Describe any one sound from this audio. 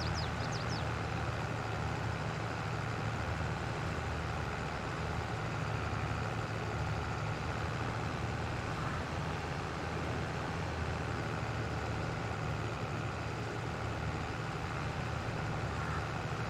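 A tractor engine rumbles steadily as it drives along.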